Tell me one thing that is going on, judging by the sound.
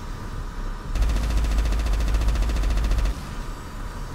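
A large explosion booms with a deep rumble.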